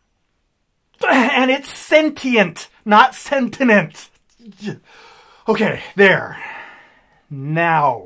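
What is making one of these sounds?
A man talks loudly and excitedly close to a microphone.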